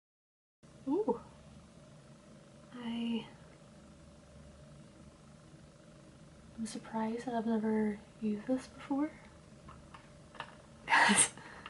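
A young woman talks calmly and close to the microphone.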